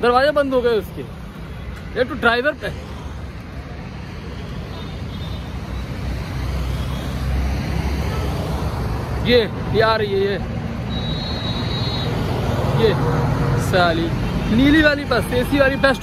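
Traffic rumbles past outdoors.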